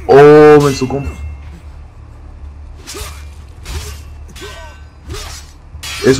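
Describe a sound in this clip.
Blades clash and strike in a sword fight.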